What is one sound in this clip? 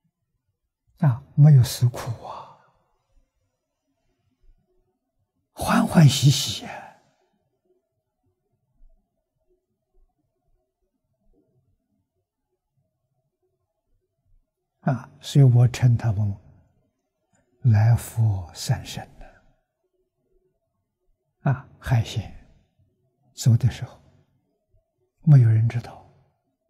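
An elderly man speaks calmly and warmly into a close microphone, in short phrases with long pauses.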